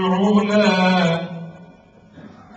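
A man chants in a loud, drawn-out voice through a microphone.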